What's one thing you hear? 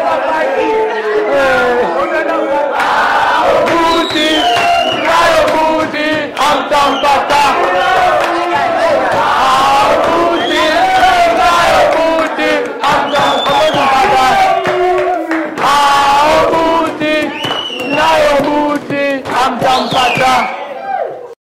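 Young people clap their hands in rhythm.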